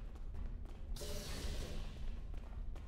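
A sliding door whooshes open.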